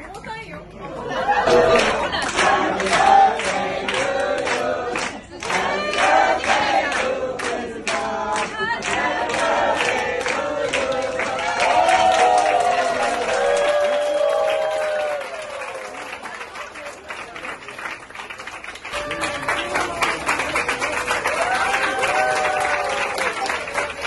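A crowd claps hands in rhythm.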